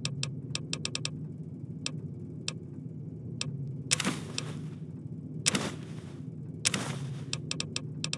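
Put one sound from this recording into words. Short, sharp interface clicks tick again and again as a menu is scrolled.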